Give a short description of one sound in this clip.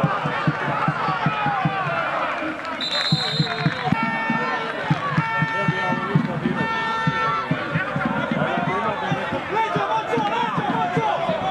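A crowd of spectators chants and shouts loudly outdoors.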